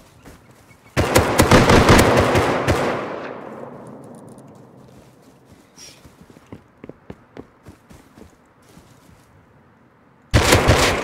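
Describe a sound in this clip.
A rifle fires rapid loud bursts that echo and fade.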